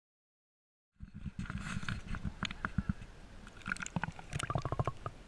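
Water splashes and gurgles close by, heard muffled as if underwater.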